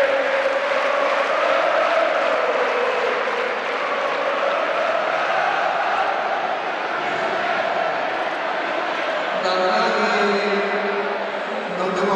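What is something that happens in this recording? A young man sings into a microphone through loudspeakers.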